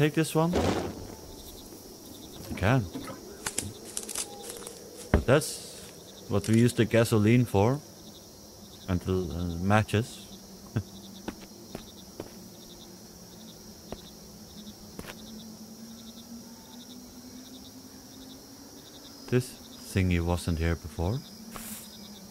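A man talks into a close microphone in short bursts, with animation.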